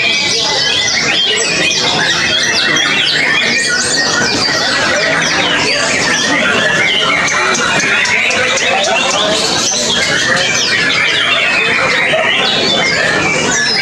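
Many other birds chirp and twitter all around at once.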